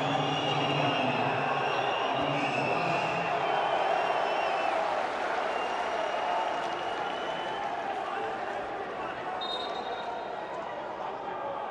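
A crowd murmurs and chants in a large open stadium.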